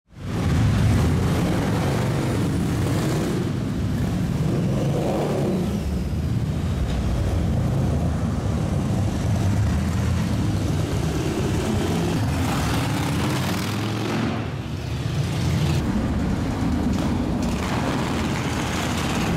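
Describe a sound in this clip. Motorcycle engines rumble loudly as several motorcycles ride past one after another.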